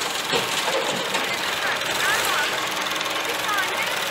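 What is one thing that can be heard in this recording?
Dirt pours from a loader's bucket into a trailer.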